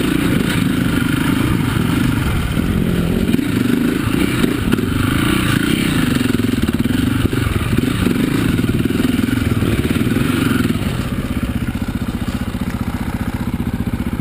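A dirt bike engine revs hard and close, rising and falling in pitch.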